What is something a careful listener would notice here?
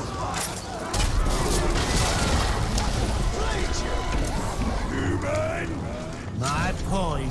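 Swords clash and bodies thud in a fierce fight.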